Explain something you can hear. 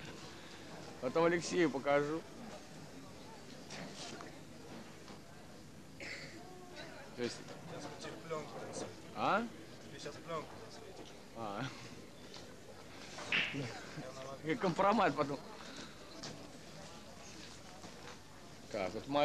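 Young men talk and laugh nearby outdoors.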